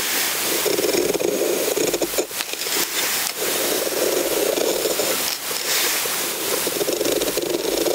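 A knife shaves thin curls from a wooden stick with a soft scraping.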